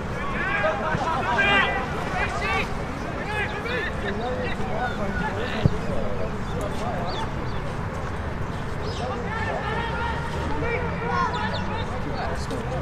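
Football players shout and call to each other across an open field.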